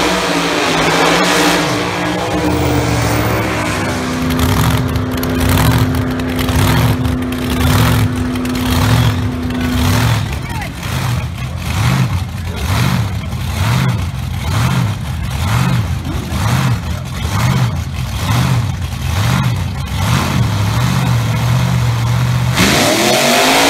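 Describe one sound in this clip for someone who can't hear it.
A drag car's engine idles with a loud, lumpy, rhythmic rumble.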